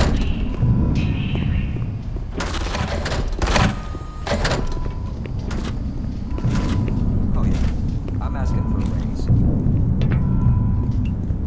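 A weapon is switched with a short metallic clatter.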